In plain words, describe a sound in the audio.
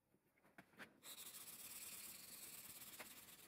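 A metal file rasps rapidly against steel.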